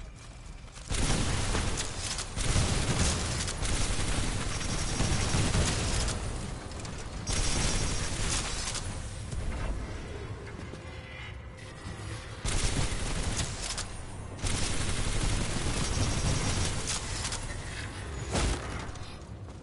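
Energy guns fire in loud rapid bursts with booming blasts.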